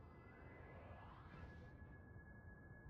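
A magical burst whooshes and rises in pitch.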